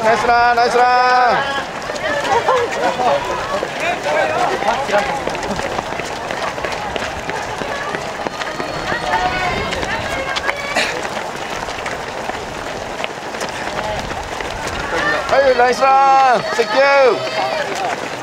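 Spectators shout and cheer loudly close by.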